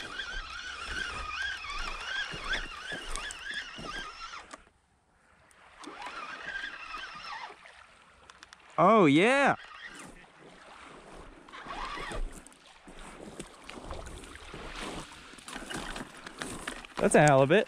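A fishing reel clicks as it winds in line.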